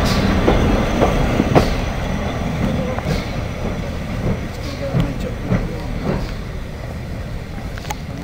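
Steel wheels clank over rail joints.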